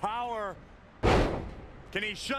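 A body slams onto a ring mat with a heavy thud.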